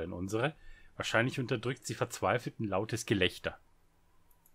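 A man speaks calmly, as if reading out a story.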